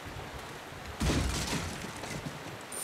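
A wooden crate is slashed and smashes apart.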